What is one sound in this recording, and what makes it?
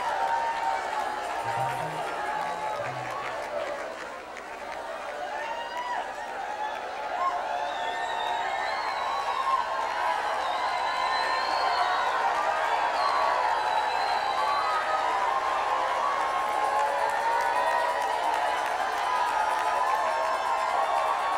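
A large crowd sings together in a big echoing hall.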